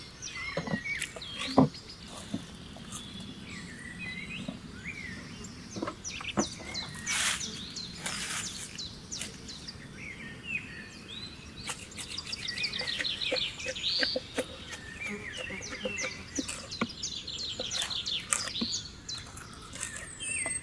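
A knife scrapes against wood.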